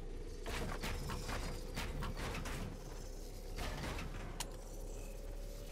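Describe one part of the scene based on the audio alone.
Building pieces clatter and snap into place in a video game.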